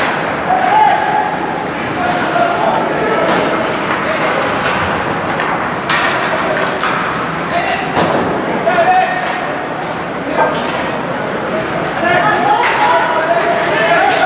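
Spectators chatter and call out in a large echoing arena.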